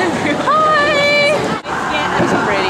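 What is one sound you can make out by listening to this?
A young woman speaks excitedly close by.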